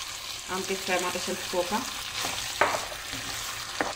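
A wooden spatula scrapes and stirs food in a pan.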